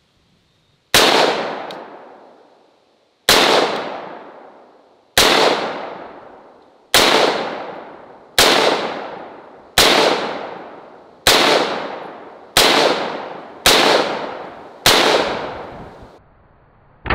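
A rifle fires single shots outdoors, each crack echoing away.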